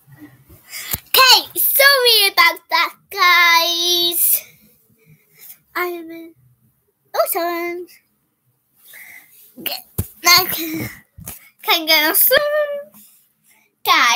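A young girl talks and sings loudly and playfully close by.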